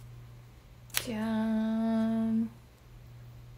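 A young woman sings a long held note.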